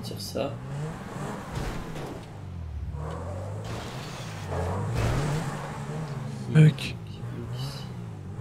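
A sports car engine revs and roars, rising and falling.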